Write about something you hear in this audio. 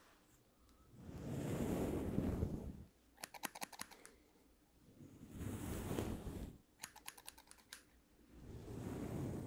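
A comb brushes against a furry microphone cover with a soft rustling.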